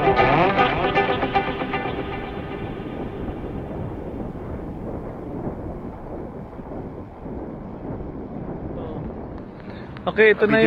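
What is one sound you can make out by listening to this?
Wind rushes past as a bicycle rolls along a road.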